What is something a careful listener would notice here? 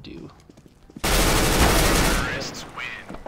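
A burst of loud gunfire rattles close by.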